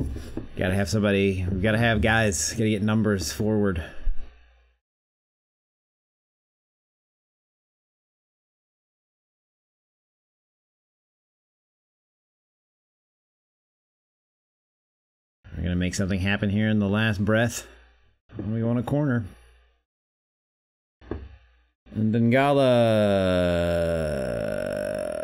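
A man talks casually into a close microphone, pausing now and then.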